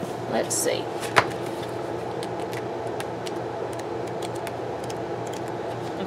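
A sheet of stickers rustles as it is handled.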